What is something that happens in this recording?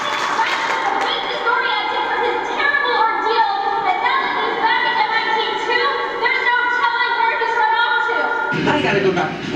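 Music plays through loudspeakers.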